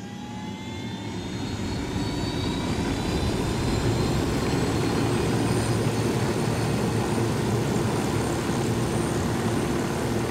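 Helicopter rotor blades thump steadily and loudly.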